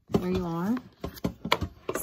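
Hands bump and knock against a metal cooker.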